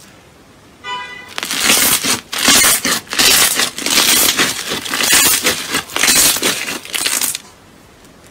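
Hands knead and squeeze soft slime, which crackles and pops.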